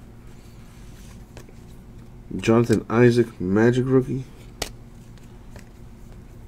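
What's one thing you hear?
Cards rustle and slide against each other as they are shuffled by hand.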